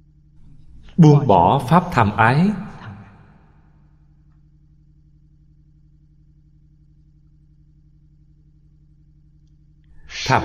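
An elderly man speaks calmly and warmly into a close microphone.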